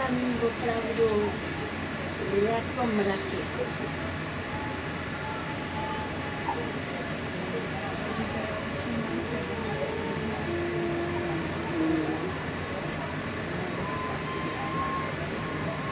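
A bus engine rumbles steadily while the bus drives.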